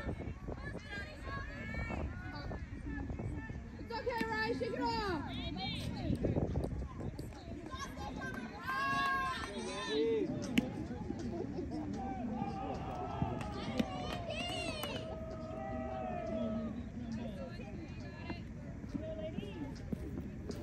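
Young players call out and cheer across an open field.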